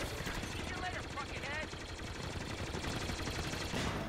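Laser cannons fire in quick bursts.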